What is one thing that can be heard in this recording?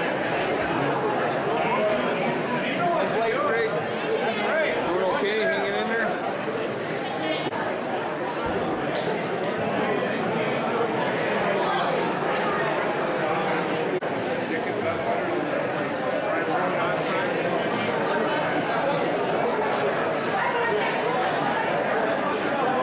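A large crowd of men and women chatters loudly in a big echoing hall.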